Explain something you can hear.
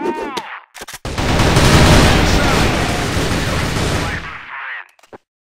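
Automatic rifles fire in rapid, loud bursts.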